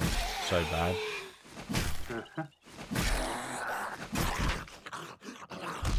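A knife stabs into flesh with wet thuds.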